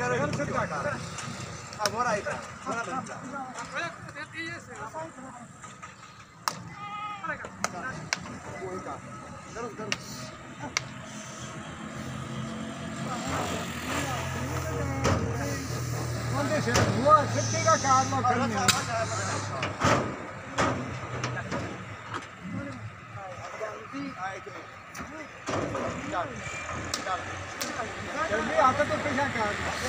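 Hooves thump and clatter on a metal truck ramp.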